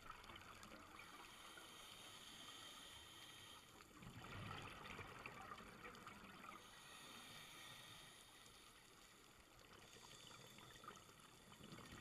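Air bubbles gurgle and fizz underwater.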